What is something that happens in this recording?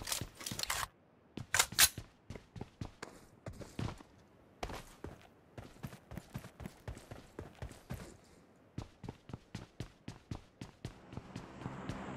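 Quick footsteps run across the ground.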